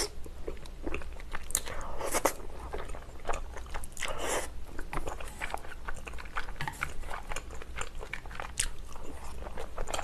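A young woman chews food with soft wet mouth sounds.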